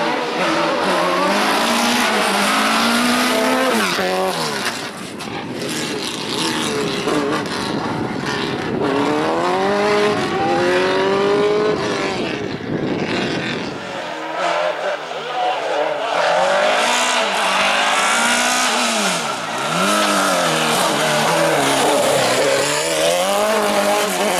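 A racing car engine roars close by, revving up and down as gears change.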